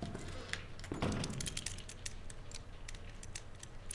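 Combination lock dials click as they turn.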